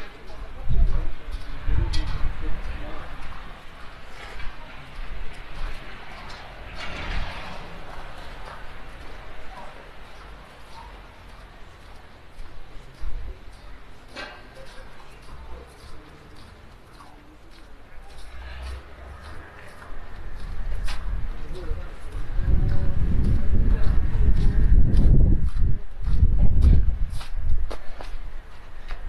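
Footsteps crunch steadily on packed snow.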